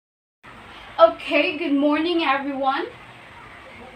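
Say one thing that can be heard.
A young woman speaks cheerfully to a listener close by.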